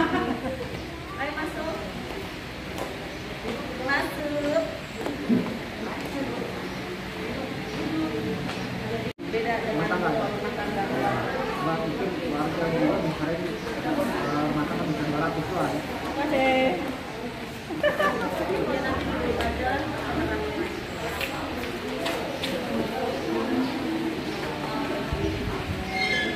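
Several people chatter in a room with hard walls.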